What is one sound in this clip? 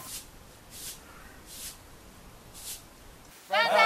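A broom sweeps in short strokes.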